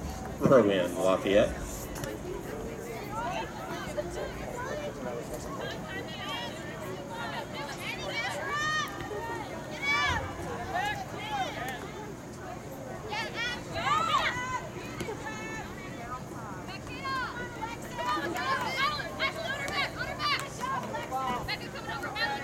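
Young women shout and call to each other across an open field outdoors.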